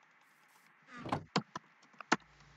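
A wooden chest thumps shut.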